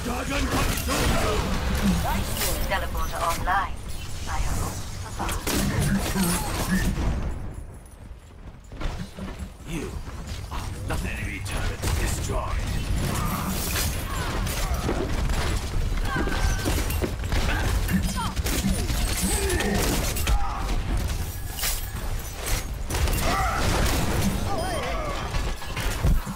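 Heavy gunfire and explosions boom in quick bursts.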